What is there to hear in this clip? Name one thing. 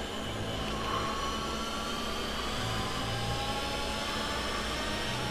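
A racing car engine screams at high revs, rising in pitch as the car speeds up.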